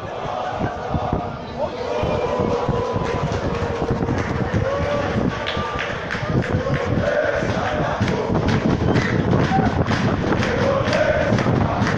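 A crowd of fans chants and sings in a large open stadium.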